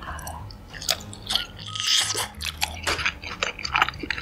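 A young woman chews saucy food close to a microphone with wet, smacking sounds.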